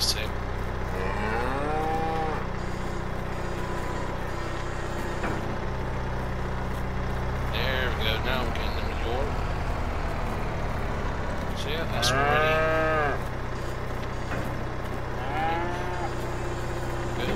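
Cows moo now and then.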